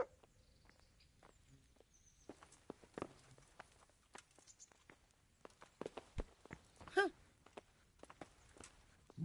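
Footsteps knock on a wooden floor indoors.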